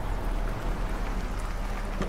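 Water splashes steadily in a fountain.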